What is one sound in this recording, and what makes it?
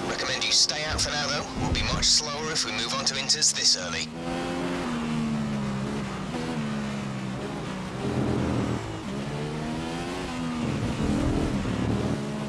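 A racing car engine hums loudly and its pitch drops as it slows.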